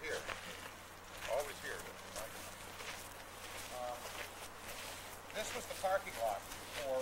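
Men talk casually nearby outdoors.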